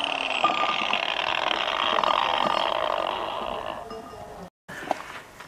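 An angle grinder whirs loudly and winds down.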